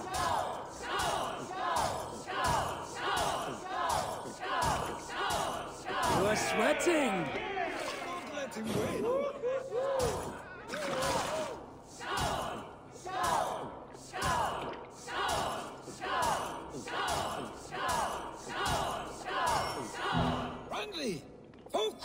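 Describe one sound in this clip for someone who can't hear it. A crowd of men chants together in a steady, rhythmic beat.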